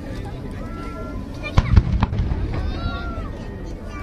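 Fireworks whistle as they shoot upward.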